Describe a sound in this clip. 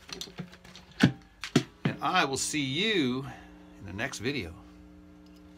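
A cigar box guitar's strings are plucked and twang.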